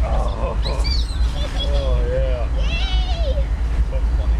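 A young child calls out in a high voice nearby.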